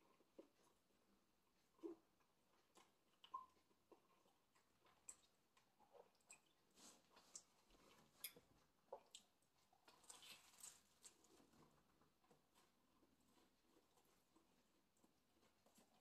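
A man chews food loudly and smacks his lips close by.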